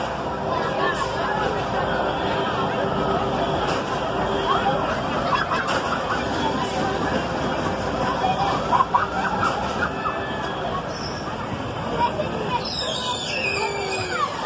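A loud crowd murmurs all around outdoors.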